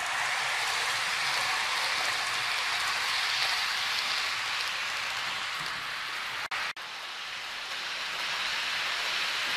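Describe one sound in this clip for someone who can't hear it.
A model train whirs steadily along its track.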